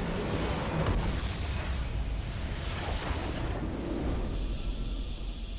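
Loud explosions boom and crash in a game.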